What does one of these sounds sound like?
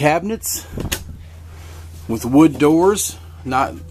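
A wooden cabinet door clicks open.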